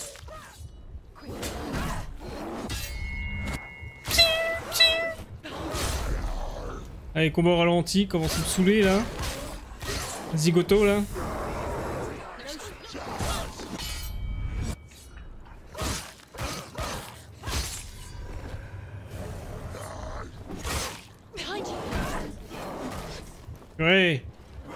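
Sword blows clash and thud in a fight.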